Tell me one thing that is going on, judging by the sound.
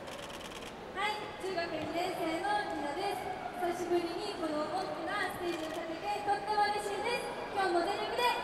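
A young woman sings through a loudspeaker.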